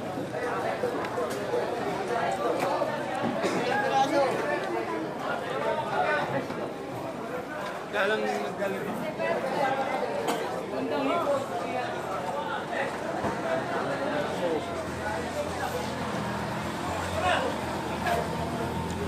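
A crowd of men chatter loudly all around, close by.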